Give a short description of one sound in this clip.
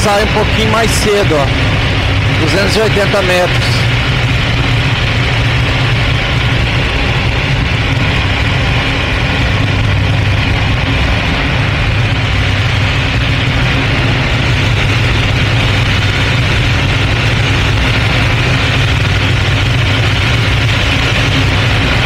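A small plane's engine drones loudly and steadily.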